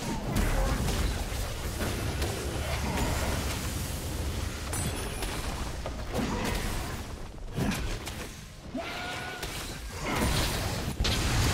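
Blows and impacts thud sharply again and again.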